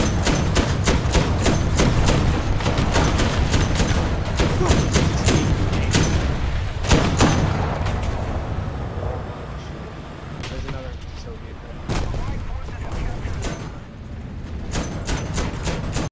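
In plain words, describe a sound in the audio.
An armoured vehicle's engine rumbles low.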